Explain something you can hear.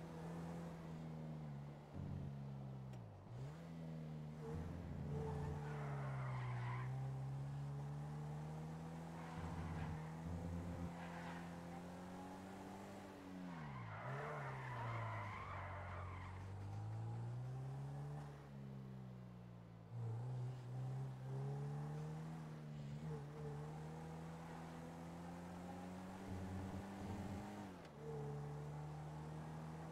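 A sports car engine revs up and down through the gears.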